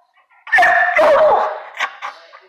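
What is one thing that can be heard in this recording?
A dog barks and howls loudly up close.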